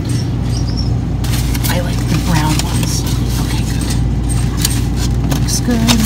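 A plastic egg carton rustles and clicks as a hand pulls it from a shelf.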